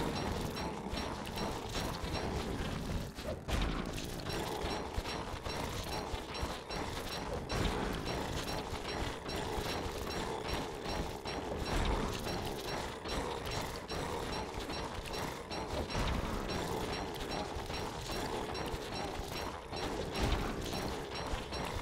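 A monster's heavy footsteps thud on the ground.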